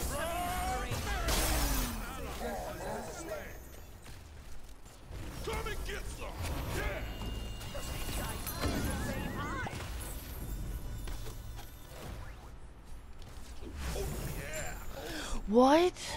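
Spell effects whoosh and crackle in a game.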